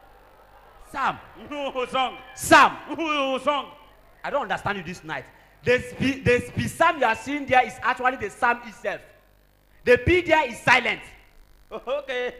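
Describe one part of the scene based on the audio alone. A young man speaks loudly and with animation into a microphone in an echoing hall.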